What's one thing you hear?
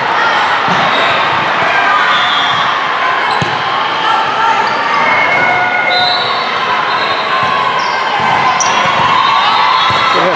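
A volleyball is hit with sharp smacks in a large echoing hall.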